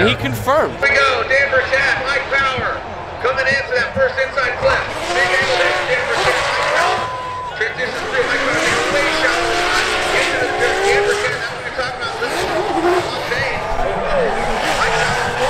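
Drift car engines roar and whine at high revs nearby, outdoors.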